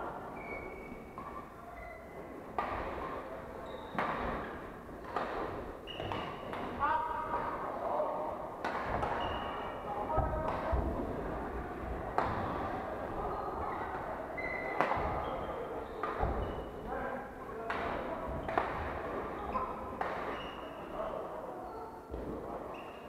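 Shoes squeak sharply on a court floor.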